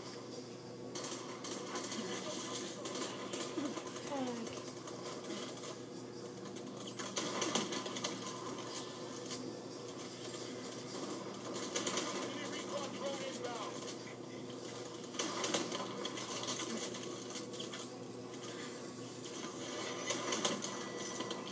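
Sniper rifle shots from a video game ring out through a television speaker.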